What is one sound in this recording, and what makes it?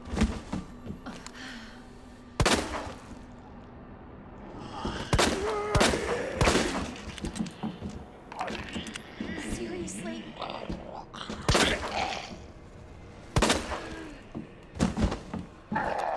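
Pistol shots ring out, loud and sharp, with a short echo.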